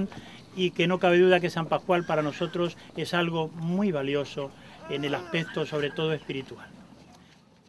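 A middle-aged man speaks aloud in a steady, reciting voice outdoors.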